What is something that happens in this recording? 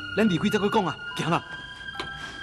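A young man speaks urgently.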